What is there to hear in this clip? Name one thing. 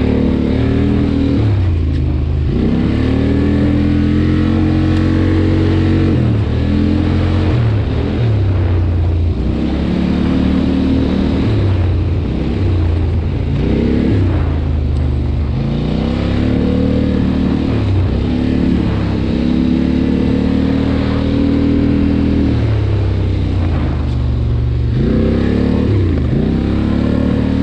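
Tyres roll over a bumpy dirt track.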